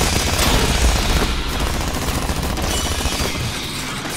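Automatic guns fire in rapid, loud bursts.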